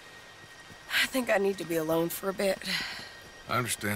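A young woman speaks quietly and sadly.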